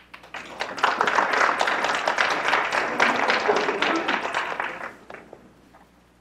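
An audience applauds loudly in a large room, then the applause fades out.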